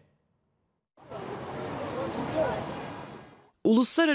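A busy crowd murmurs outdoors.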